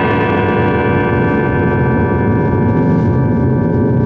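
A cymbal rings out and slowly fades.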